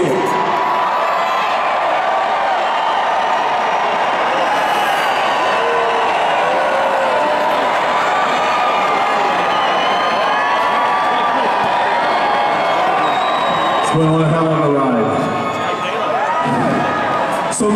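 A large crowd sings along loudly in a huge echoing arena.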